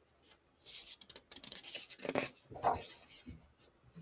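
A book's page turns with a papery rustle.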